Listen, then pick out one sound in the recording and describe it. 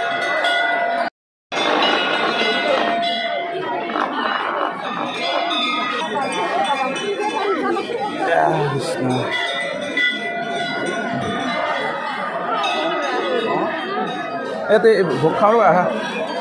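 A large crowd of men and women chatters all around, close by, outdoors.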